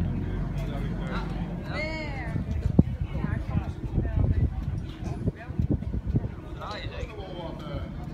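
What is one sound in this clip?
A group of men and women chat nearby outdoors.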